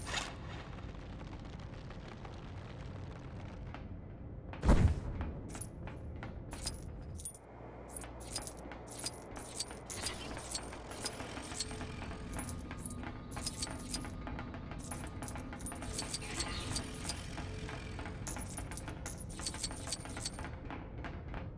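Quick footsteps tap on a metal floor.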